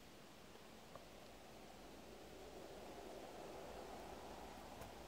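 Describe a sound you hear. Wind softly rustles through spruce branches outdoors.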